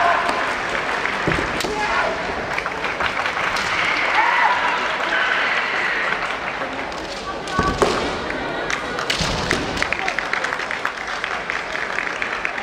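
Bamboo swords clack together sharply.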